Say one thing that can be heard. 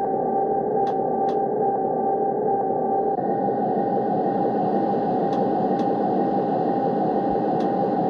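Train wheels click over rail joints now and then.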